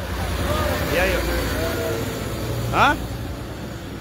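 A truck engine rumbles as it drives past.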